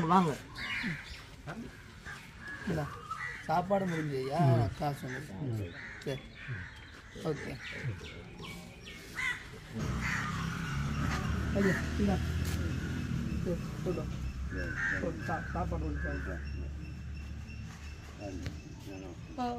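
An elderly man speaks with a rough voice nearby.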